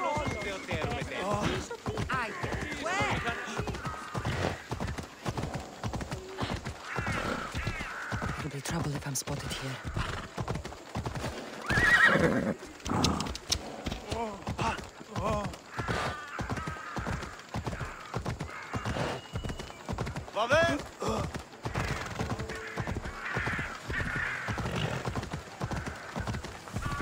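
A horse's hooves clop quickly and steadily on stone paving.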